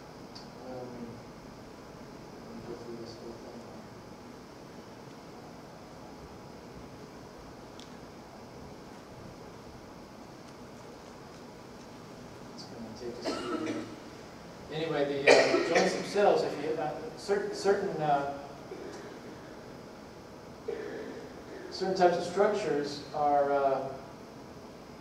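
A man speaks calmly into a microphone, pausing often.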